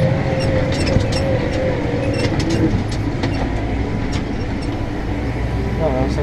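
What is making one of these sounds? A tractor engine rumbles steadily from inside the cab.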